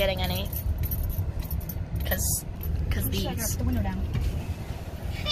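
A low engine rumble hums steadily inside a car.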